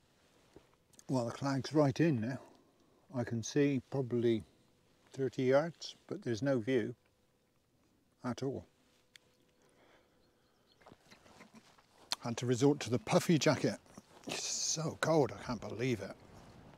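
An elderly man talks calmly close to a microphone.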